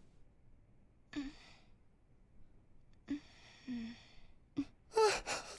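A young woman speaks softly close by.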